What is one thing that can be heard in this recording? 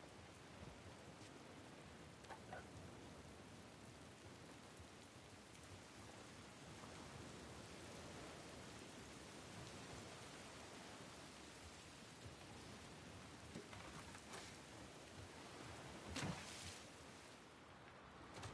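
A strong wind blows steadily outdoors.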